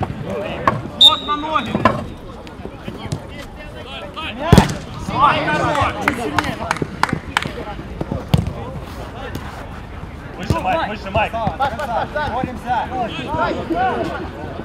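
A football is kicked with sharp thumps.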